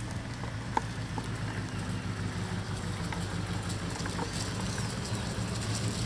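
An old car's engine rumbles steadily as the car rolls slowly closer across grass.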